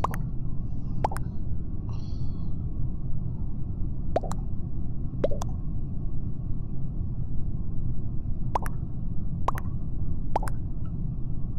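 Short game alert tones ping as chat messages arrive.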